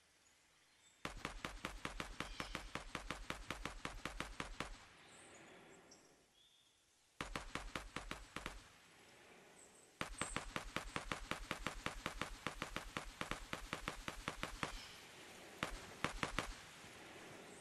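Rapid gunfire rattles in long bursts nearby.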